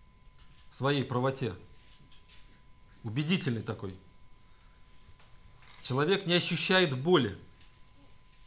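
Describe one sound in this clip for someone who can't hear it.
A man speaks with animation in short bursts into a microphone.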